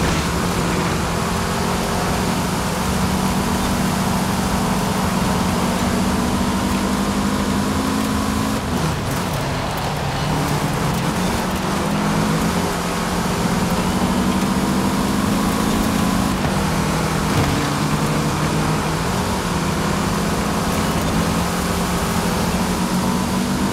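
Tyres crunch and skid over loose dirt.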